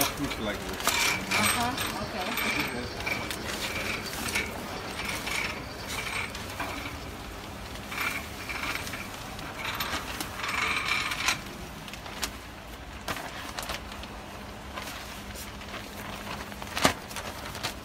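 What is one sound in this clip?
A packaging machine clicks and whirs steadily.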